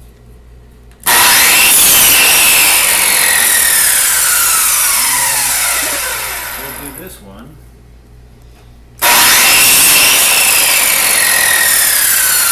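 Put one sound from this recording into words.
A power miter saw whines loudly as it spins up and cuts through wood, then winds down.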